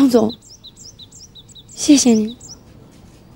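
A middle-aged woman speaks softly.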